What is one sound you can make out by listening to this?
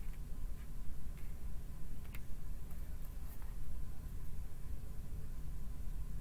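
Playing cards are shuffled and tapped together.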